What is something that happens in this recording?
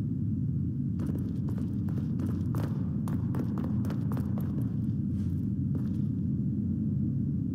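Footsteps tread on a stone floor.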